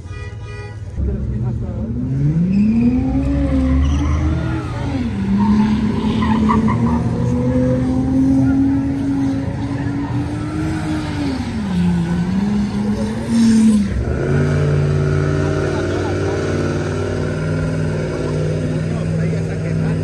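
A car engine revs loudly and roars up and down in pitch.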